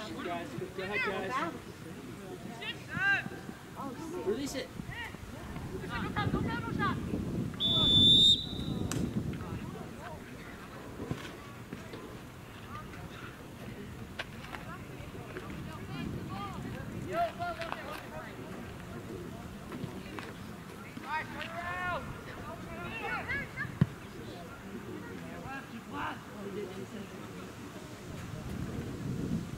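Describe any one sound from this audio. Young men shout to each other across an open field at a distance.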